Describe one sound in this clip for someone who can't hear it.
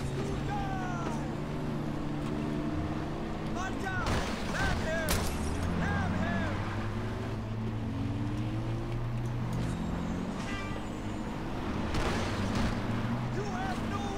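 A heavy truck engine rumbles close by.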